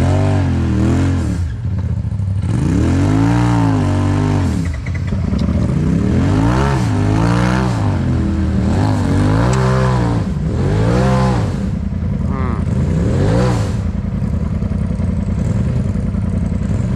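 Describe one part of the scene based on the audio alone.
Tyres crunch and grind over loose rocks.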